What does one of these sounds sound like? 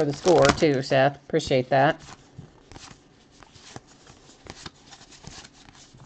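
Trading cards rustle and slide against each other as they are flipped.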